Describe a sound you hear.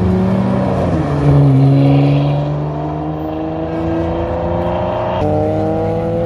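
A sports car engine revs loudly and roars away.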